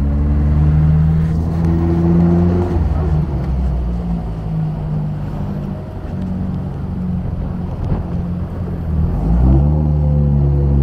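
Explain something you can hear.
Wind rushes past an open car.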